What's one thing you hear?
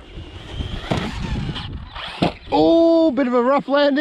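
A toy car thuds onto the ground after a jump.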